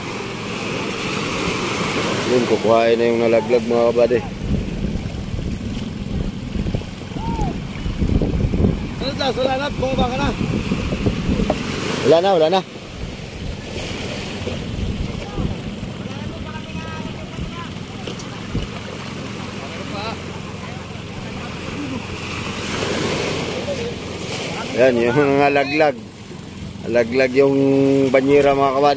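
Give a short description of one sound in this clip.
A man splashes through shallow water.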